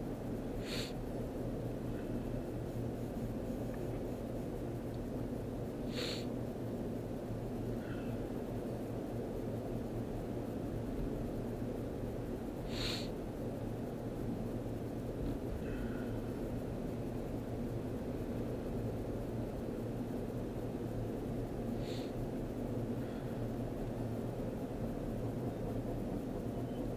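Tyres roll steadily on a highway.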